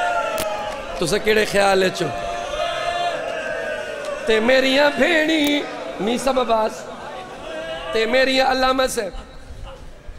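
A group of men chant along in chorus.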